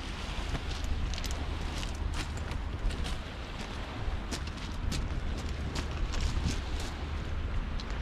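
Footsteps crunch on pebbles.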